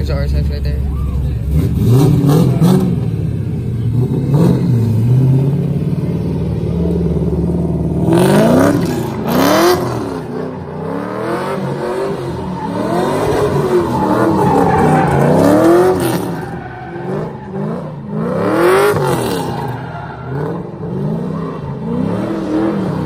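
A car engine revs hard and roars.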